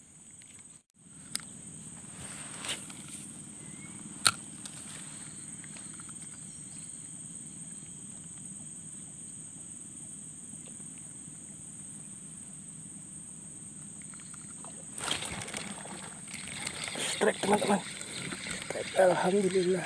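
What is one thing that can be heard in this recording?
Water trickles in a small stream nearby.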